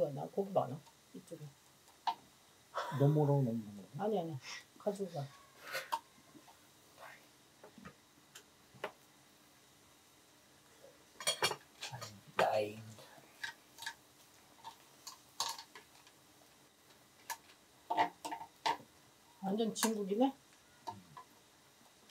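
Metal tongs and chopsticks clink against dishes and a grill pan.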